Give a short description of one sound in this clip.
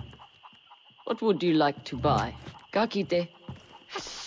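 A woman asks a question calmly.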